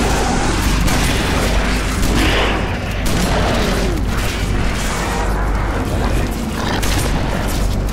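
Explosions boom with a low rumble.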